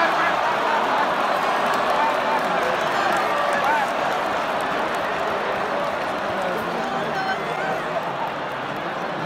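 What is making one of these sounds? A large stadium crowd chatters and cheers loudly all around.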